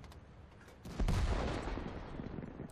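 A tank shell explodes with a loud boom.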